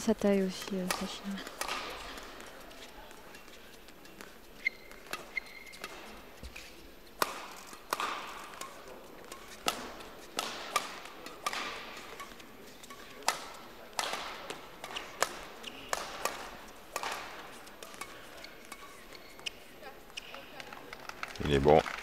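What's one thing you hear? Shuttlecocks are struck sharply back and forth by rackets in a large echoing hall.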